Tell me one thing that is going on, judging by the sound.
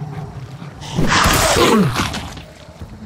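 A creature lets out a loud, falling shriek close by.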